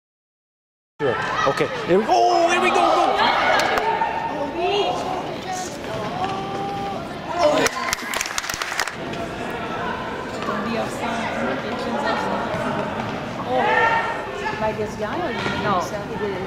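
Young women shout to each other in a large echoing hall.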